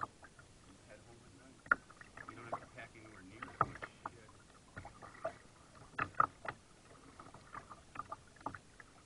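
Small waves lap and splash against the bow of a kayak.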